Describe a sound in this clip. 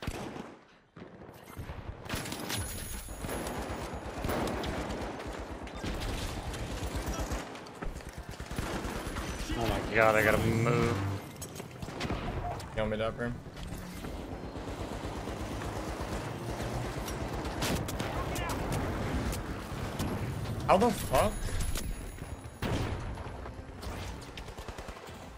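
Rapid gunfire rattles on and on.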